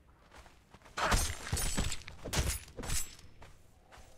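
Sword blows land with heavy, wet hits in a quick flurry.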